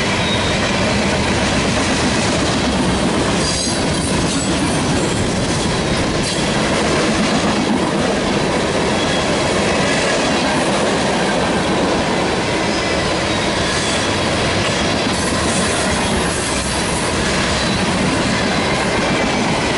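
A long freight train rumbles and clatters past close by.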